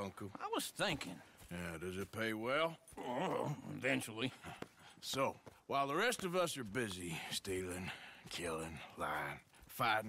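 An elderly man answers in a gruff voice.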